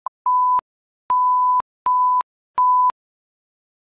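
An electronic device beeps in short, steady tones.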